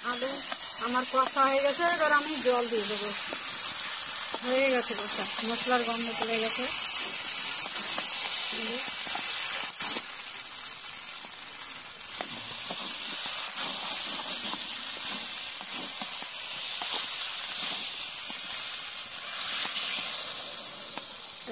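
A metal spatula scrapes and clatters against a metal pan.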